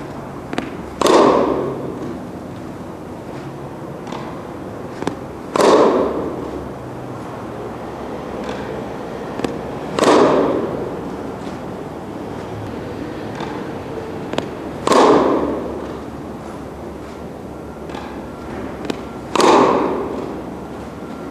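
A tennis racket hits a ball with a sharp pop that echoes in a large indoor hall.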